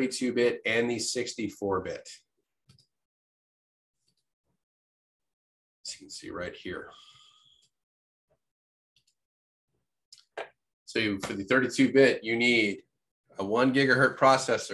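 A man speaks calmly into a microphone, explaining in short bursts with pauses.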